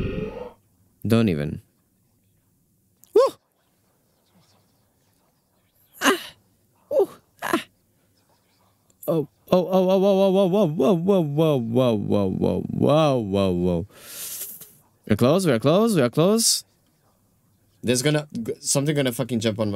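A young man talks into a close microphone, on and off, with animation.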